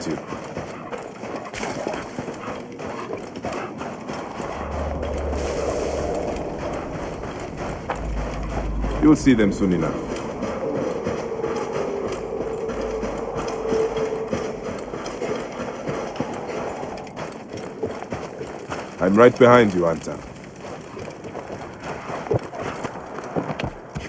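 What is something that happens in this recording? Footsteps run on sand and wooden planks.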